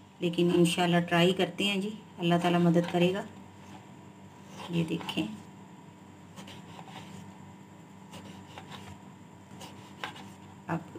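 A knife slices through a raw potato against a cutting board.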